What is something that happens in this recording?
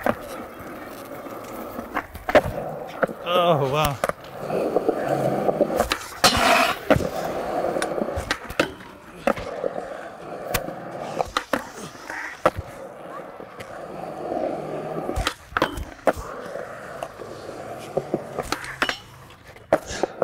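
A skateboard clacks and grinds on a metal rail.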